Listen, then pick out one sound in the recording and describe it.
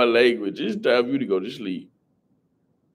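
A young man speaks casually, close to a microphone.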